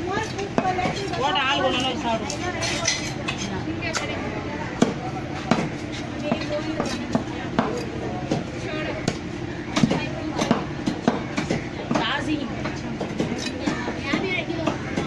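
A knife blade knocks against a stone.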